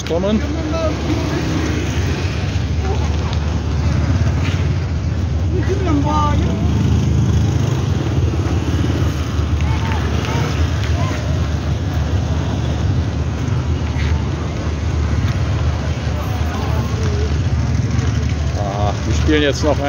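Motorbike engines hum as they ride past.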